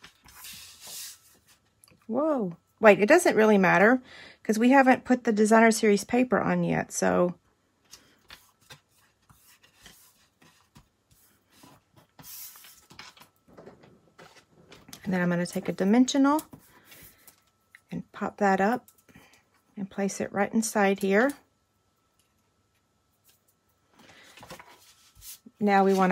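Paper card stock rustles and slides on a table.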